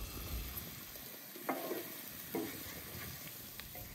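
A wooden spatula scrapes and clatters against a metal pan.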